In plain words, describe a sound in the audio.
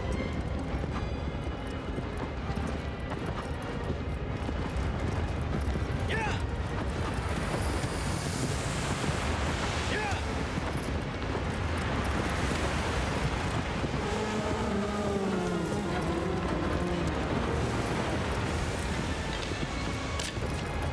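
A horse gallops with heavy hoofbeats on sand.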